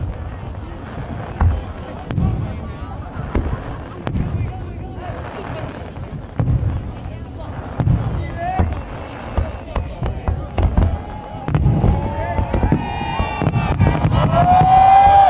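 Fireworks burst with deep booms and crackles, echoing outdoors.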